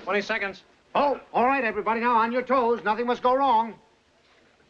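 An older man speaks with animation, close by.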